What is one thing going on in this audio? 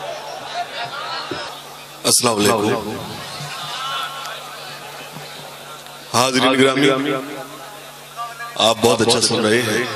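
A man recites with animation into a microphone over loudspeakers, in a large echoing space.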